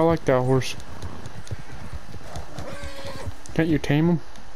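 A horse gallops, its hooves thudding on grass.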